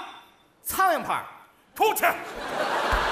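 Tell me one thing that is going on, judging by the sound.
A man shouts loudly into a microphone.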